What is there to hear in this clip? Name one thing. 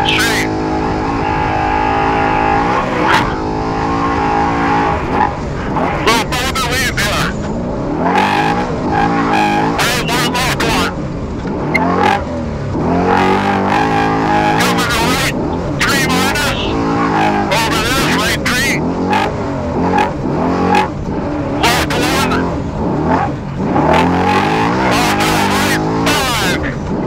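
An engine revs hard, rising and falling in pitch.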